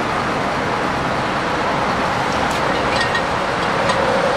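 A metal wrench clinks against a wheel nut.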